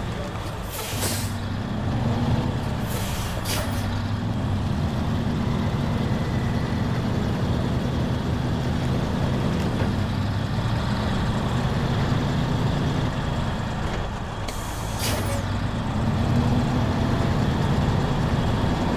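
A heavy truck engine rumbles steadily, rising and falling as it drives.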